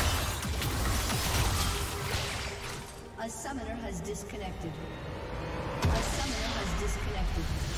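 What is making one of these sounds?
Magic blasts and impacts crackle in a video game battle.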